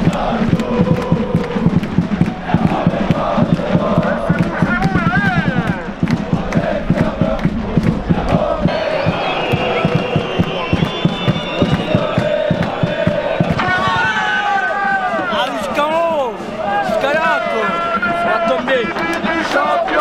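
Many people clap their hands in rhythm.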